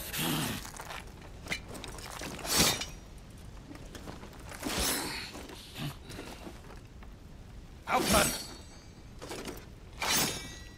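Metal armour clanks as a knight moves.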